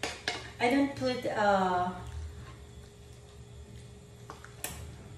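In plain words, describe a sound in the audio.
A wooden spatula scrapes and stirs food in a pan.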